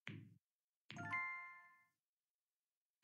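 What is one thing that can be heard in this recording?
A bright chime rings once.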